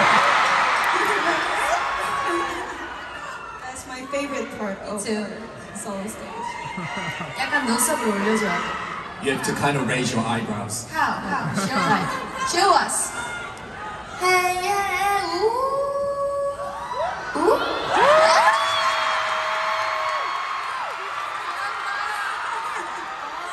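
A large crowd screams and cheers.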